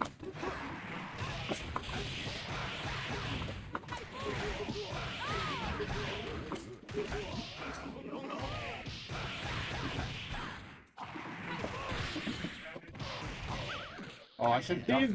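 A young man talks with animation nearby.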